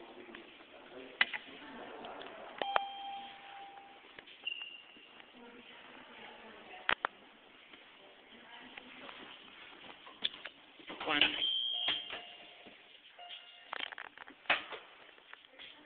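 An elevator button beeps with a short steady tone.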